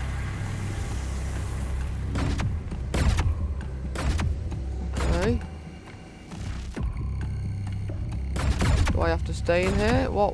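Energy beams hum and whoosh past.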